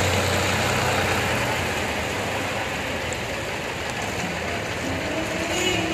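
A tractor engine rumbles close by.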